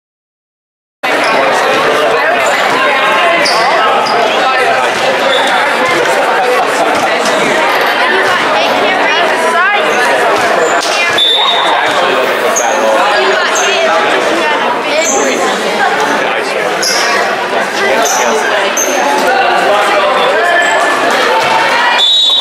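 A crowd of people chatters in a large echoing gym.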